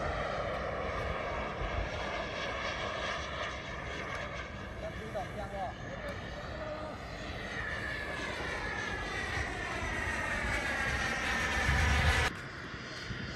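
A small model jet engine whines loudly overhead, its pitch slowly rising and falling as it passes.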